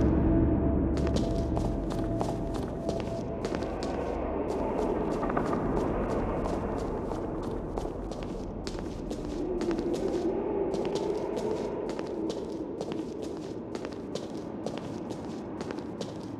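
Footsteps tap on a stone floor in an echoing hall.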